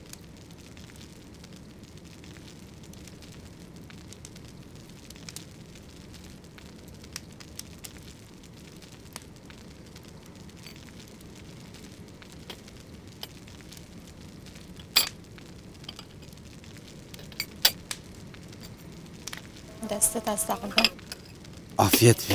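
A fire crackles in a stove.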